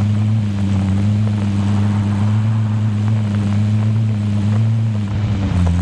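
A vehicle engine hums steadily as it drives along.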